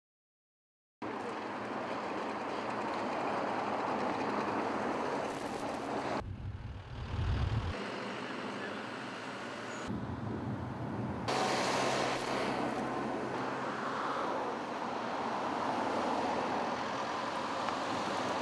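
Cars and trucks pass by on a nearby road.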